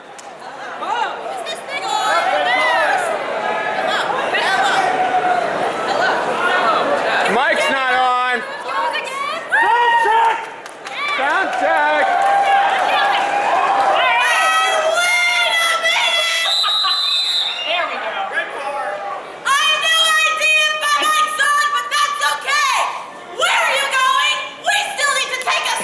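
Young women speak with animation into microphones through loudspeakers in a large echoing hall.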